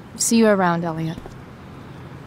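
A young woman speaks quietly and hesitantly.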